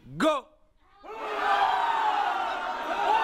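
A group of men and women laugh loudly together.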